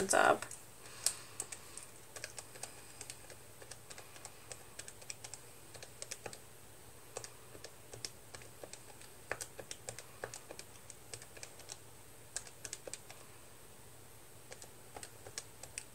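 Fingers tap quickly on calculator keys with soft plastic clicks.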